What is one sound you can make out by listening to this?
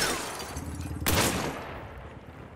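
A rifle fires a loud shot that echoes.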